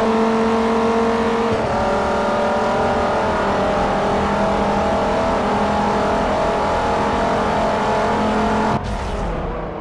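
A car engine roars at high speed, with a shift in pitch as it changes gear.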